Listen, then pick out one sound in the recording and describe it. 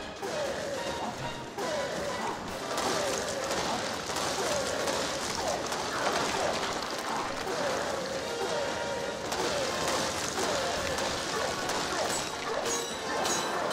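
Stone blocks crash and crumble.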